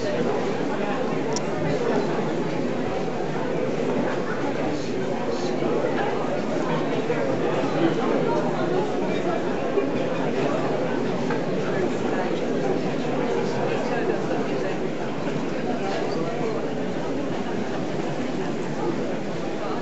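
A crowd of people murmurs quietly.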